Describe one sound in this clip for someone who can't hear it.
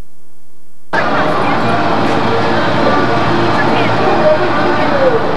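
A woman talks softly to small children close by.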